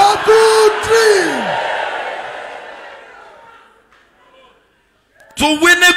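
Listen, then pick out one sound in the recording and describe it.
A man preaches loudly into a microphone, his voice ringing through loudspeakers with a long echo.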